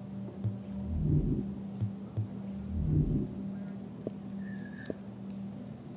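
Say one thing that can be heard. Game menu sounds click and swish as items are browsed.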